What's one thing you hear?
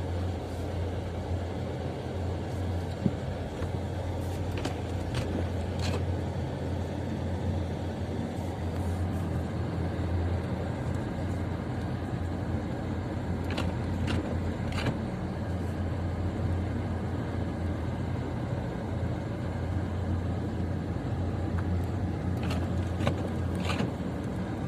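Wind-driven snow patters against the windshield.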